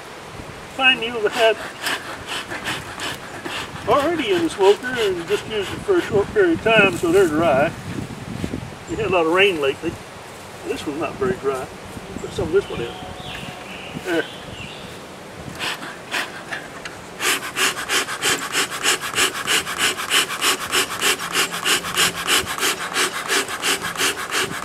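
A bee smoker's bellows puff out air in quick, steady bursts.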